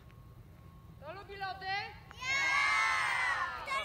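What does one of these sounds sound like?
A crowd of young people cheers and shouts together.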